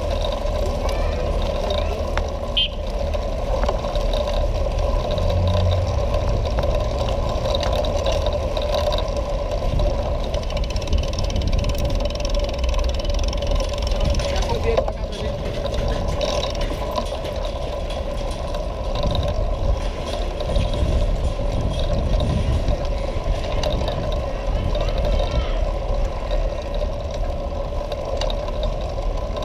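Skateboard wheels rumble and clatter steadily over rough paving stones.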